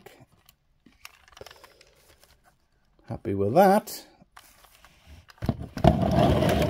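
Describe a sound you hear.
Plastic parts of a toy click and rattle as hands turn it.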